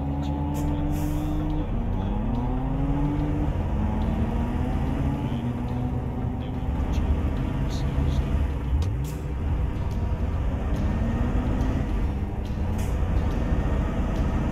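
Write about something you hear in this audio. A truck engine hums steadily and rises and falls in pitch as gears shift.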